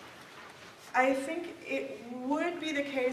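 A woman speaks clearly to a room.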